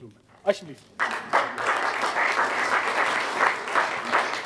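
A group of people applaud.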